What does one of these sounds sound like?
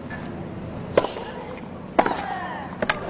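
A tennis ball is struck hard with a racket.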